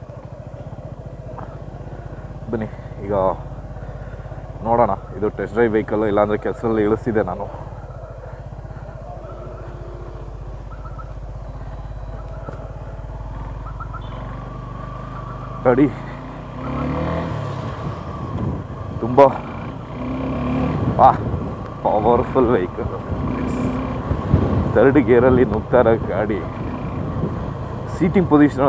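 A motorcycle engine runs with a low, steady hum and picks up as the bike rides along.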